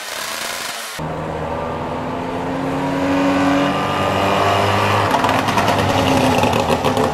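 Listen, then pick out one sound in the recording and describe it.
A small car drives by with its engine buzzing.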